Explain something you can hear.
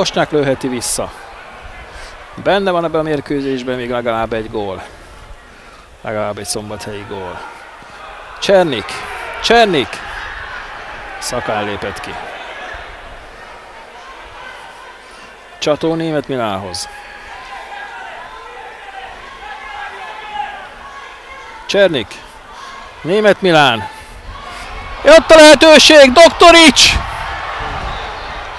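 A large crowd murmurs and chants in an open-air stadium.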